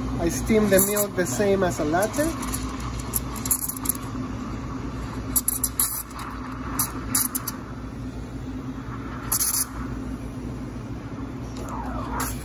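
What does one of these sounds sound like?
A steam wand hisses and gurgles as it froths milk.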